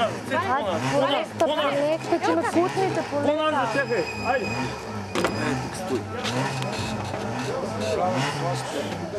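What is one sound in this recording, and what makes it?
A race car engine idles and revs unevenly.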